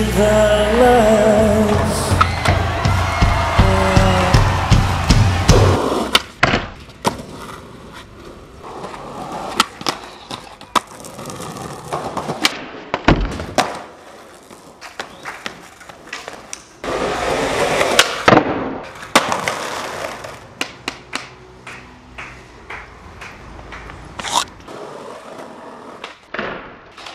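Skateboard decks clack and slap on landings and tricks.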